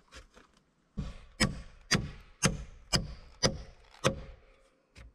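A hammer knocks sharply on wood.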